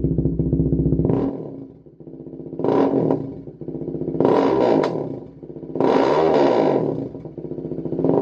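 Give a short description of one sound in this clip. A motorcycle engine revs up sharply several times and drops back.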